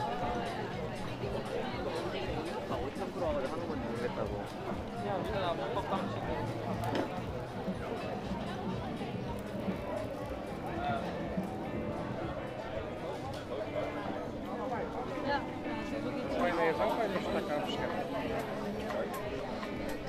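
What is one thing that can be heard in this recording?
A busy crowd chatters all around outdoors.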